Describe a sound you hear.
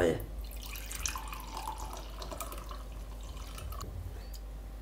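Water pours into a mug.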